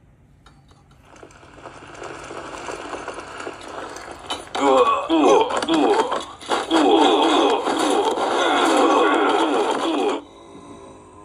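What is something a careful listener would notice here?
Battle noise of clashing weapons plays from a small tablet speaker.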